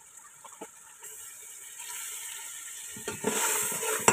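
Liquid pours into a sizzling pan.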